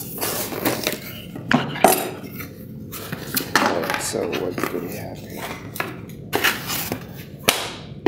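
Hands open the flaps of a cardboard box.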